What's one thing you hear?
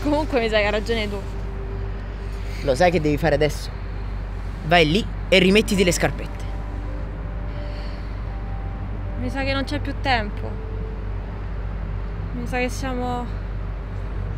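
A young woman talks quietly up close.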